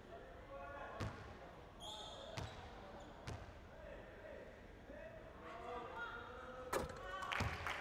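A basketball bounces on a wooden court with sharp thuds.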